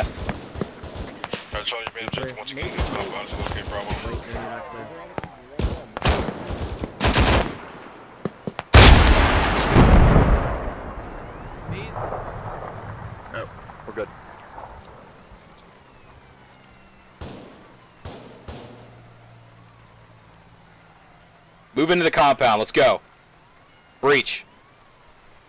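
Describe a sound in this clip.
Gunfire crackles in rapid bursts.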